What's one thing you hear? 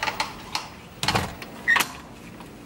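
Keys jingle in a lock.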